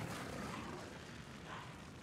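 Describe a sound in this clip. A fireball bursts with a roar.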